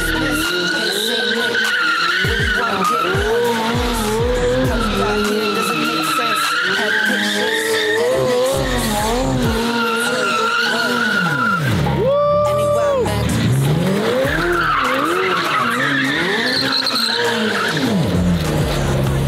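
Tyres squeal loudly on tarmac.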